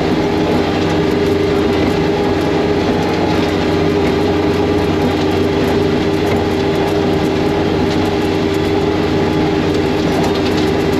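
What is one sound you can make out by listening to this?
A snowmobile engine drones loudly and steadily.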